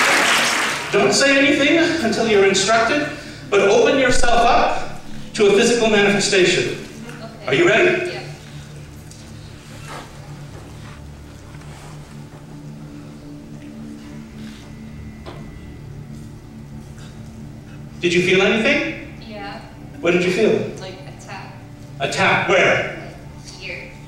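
A man speaks dramatically through a microphone in a large echoing hall.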